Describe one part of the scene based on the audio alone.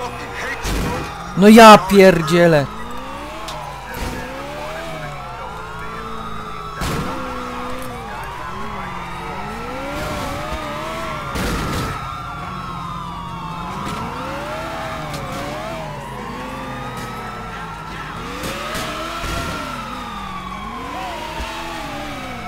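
A sports car engine roars and revs.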